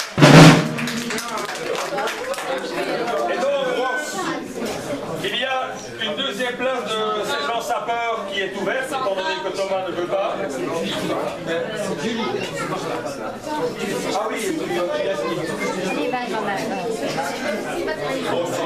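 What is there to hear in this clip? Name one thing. Children chatter and murmur all around in an echoing room.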